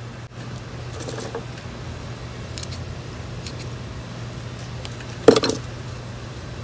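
Soil and pebbles rattle as a small pot is set down.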